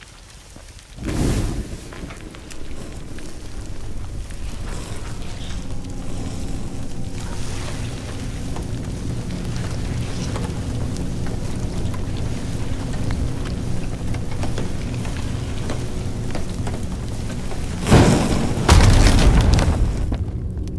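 Flames crackle and flutter steadily.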